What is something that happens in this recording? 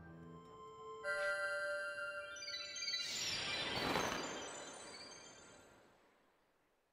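A bright magical chime rings out and swells into a rushing whoosh.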